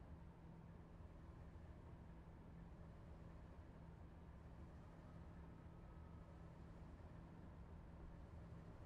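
A train engine hums steadily as the train rolls along.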